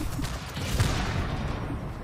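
An explosion bursts close by.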